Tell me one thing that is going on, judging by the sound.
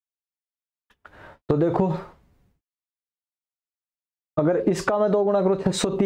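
A man speaks with animation into a close microphone, explaining.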